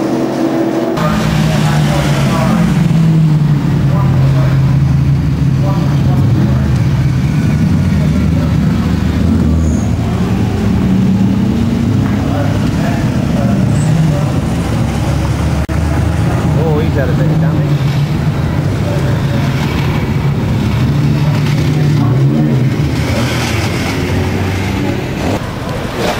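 Racing car engines drone and rev loudly as the cars pass one after another close by.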